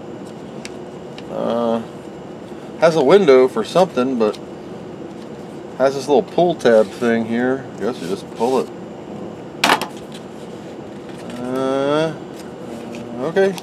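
Cardboard packaging rustles and scrapes as it is handled and opened.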